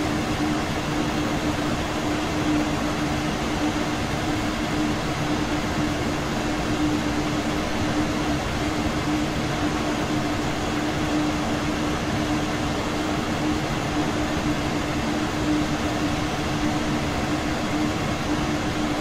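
A train's motor hums with a steady low tone.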